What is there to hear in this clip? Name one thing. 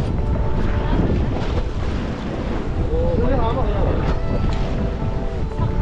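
Waves splash against the side of a boat.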